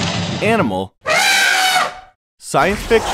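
An elephant trumpets loudly.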